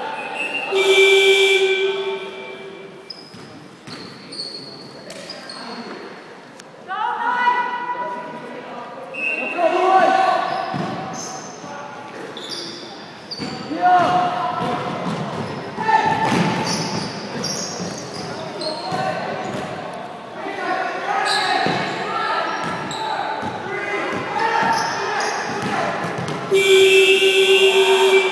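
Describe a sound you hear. Sneakers squeak sharply on a wooden gym floor.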